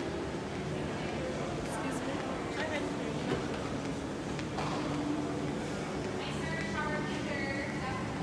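A crowd of shoppers murmurs in a large echoing hall.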